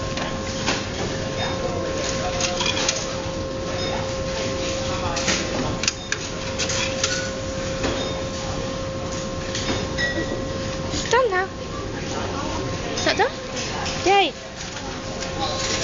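A checkout machine gives off a steady electronic hum.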